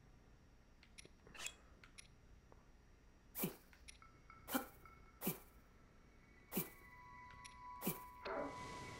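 Short game menu blips sound as items are selected.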